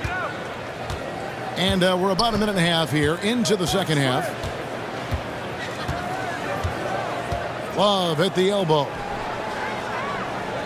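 A large indoor crowd murmurs steadily in an echoing arena.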